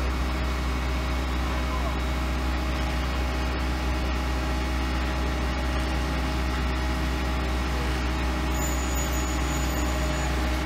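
A rail excavator's diesel engine rumbles steadily nearby.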